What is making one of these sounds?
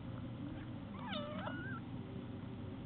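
A small animal squeals shrilly, close by.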